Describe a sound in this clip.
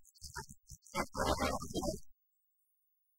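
A young man speaks loudly.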